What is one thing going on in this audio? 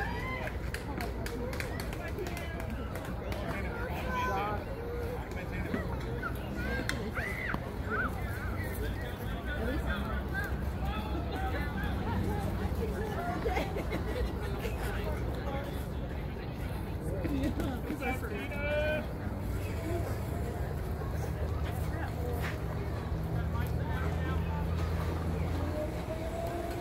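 Several men and women talk and call out at a distance outdoors.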